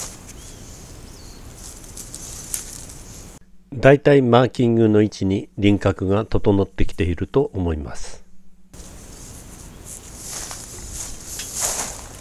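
Leaves rustle as branches are pushed aside.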